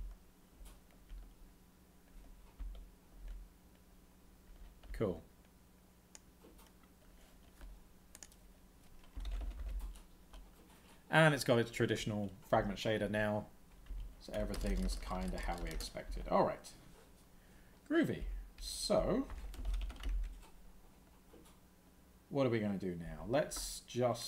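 Computer keys click softly.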